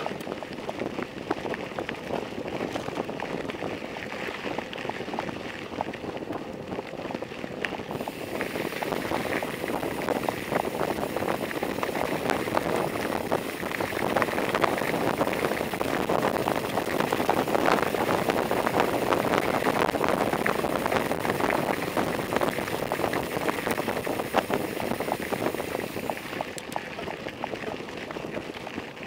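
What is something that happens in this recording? Bicycle tyres crunch and rattle over a gravel road.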